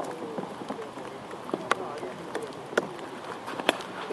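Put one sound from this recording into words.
A cricket bat knocks a ball.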